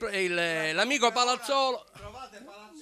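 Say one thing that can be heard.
An elderly man sings out loudly with a strong voice.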